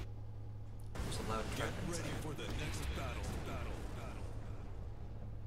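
A fiery whoosh roars past.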